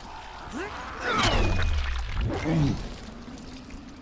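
An explosion bursts with a loud roar.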